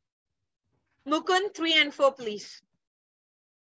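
A young woman speaks clearly and calmly over an online call.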